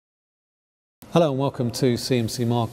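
A middle-aged man speaks calmly into a clip-on microphone, close by.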